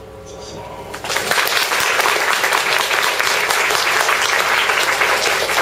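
A woman claps her hands close by.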